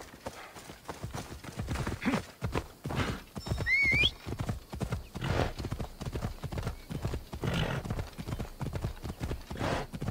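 A horse gallops with heavy hoofbeats.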